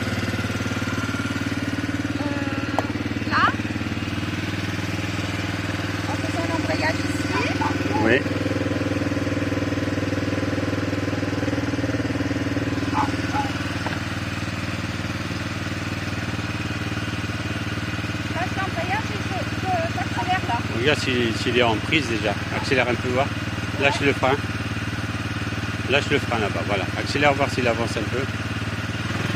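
A small quad bike engine idles steadily close by.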